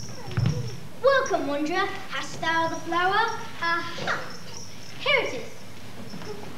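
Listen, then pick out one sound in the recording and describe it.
A child sings loudly on a stage in a large hall.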